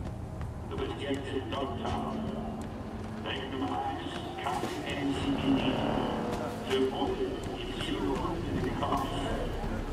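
Footsteps tread on hard wet ground.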